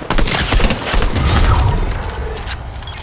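Gunshots crack in a game.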